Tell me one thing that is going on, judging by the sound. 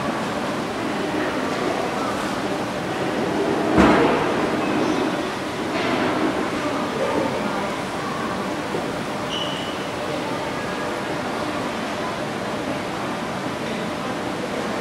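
Dancers' shoes shuffle and tap on a hard floor in an echoing hall.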